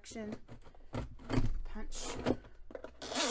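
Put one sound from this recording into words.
A hole punch lever thuds down and punches through paper.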